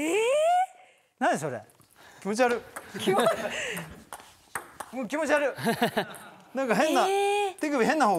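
A woman gasps and laughs in surprise.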